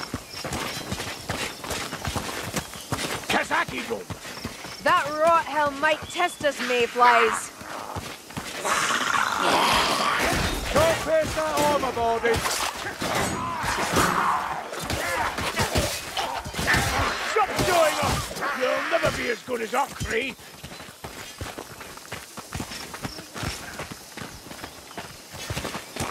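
Footsteps rustle quickly through tall dry grass.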